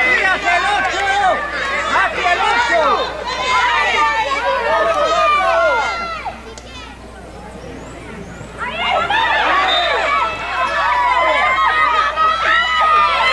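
Children shout and call out excitedly across an outdoor pitch.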